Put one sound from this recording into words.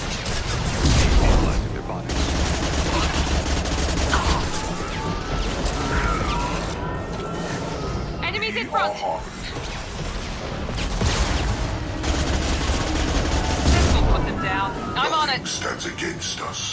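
Blasts of energy crackle and boom.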